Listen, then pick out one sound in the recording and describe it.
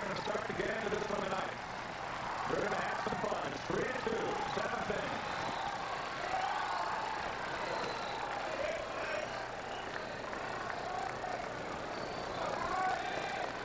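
A crowd murmurs in a large open stadium.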